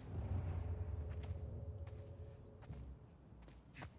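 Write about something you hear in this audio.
Footsteps crunch on scattered debris.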